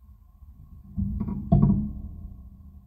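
A plastic nail tip knocks onto a hard surface.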